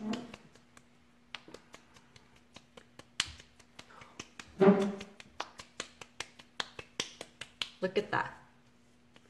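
Fingertips pat and tap lightly on skin.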